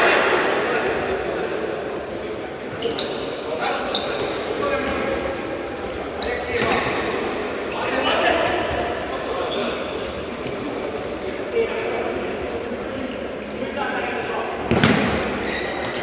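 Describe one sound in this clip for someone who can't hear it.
A crowd murmurs in an echoing indoor hall.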